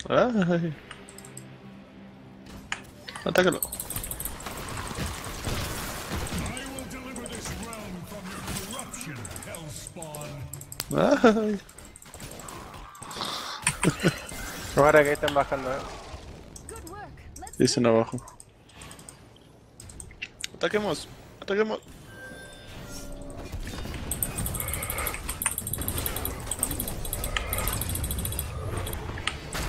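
Fantasy battle sound effects of spells and blows crash and crackle.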